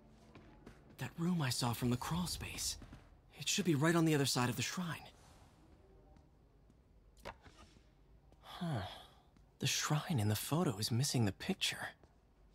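A young man speaks calmly and thoughtfully, close by.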